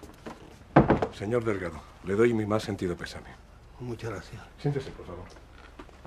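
A middle-aged man answers in a low voice nearby.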